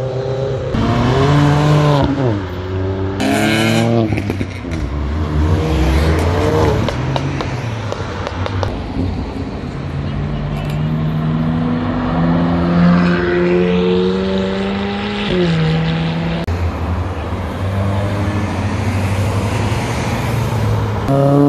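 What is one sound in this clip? Sports car engines rev loudly and roar past close by.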